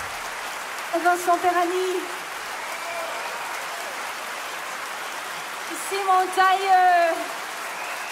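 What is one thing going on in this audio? A woman speaks briefly into a microphone.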